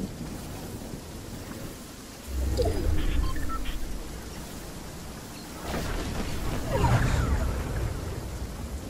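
Footsteps run quickly over grass and sand.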